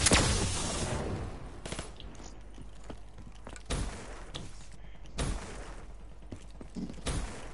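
Gunshots bang sharply in short bursts.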